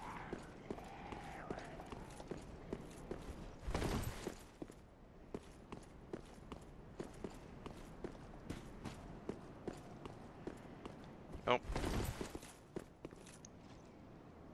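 Armoured footsteps clatter quickly on stone.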